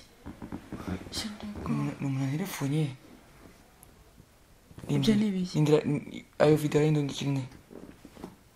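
A man speaks quietly up close.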